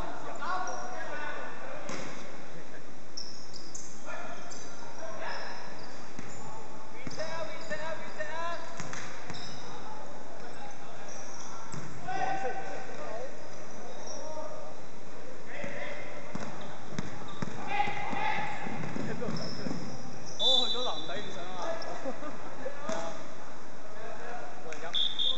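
Voices of young men call out throughout, echoing in a large hall.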